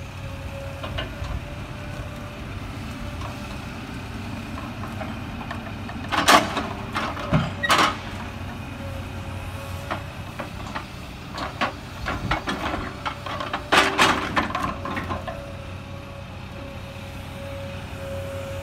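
A log loader's engine rumbles steadily.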